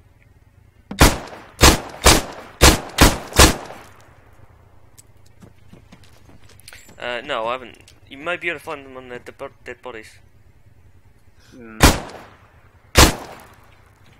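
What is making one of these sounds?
Pistol shots fire in quick succession, sharp and loud.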